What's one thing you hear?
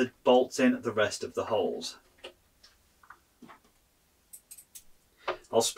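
A hex key scrapes and clicks against a metal bolt.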